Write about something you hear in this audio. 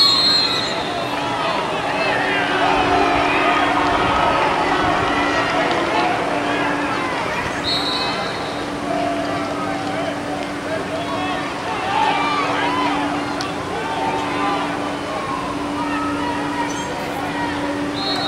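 A crowd of spectators chatters outdoors in a large stadium.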